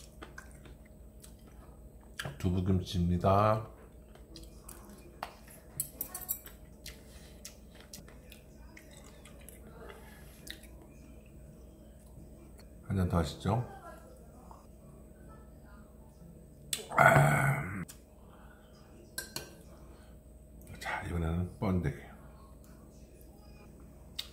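Utensils clink lightly against dishes.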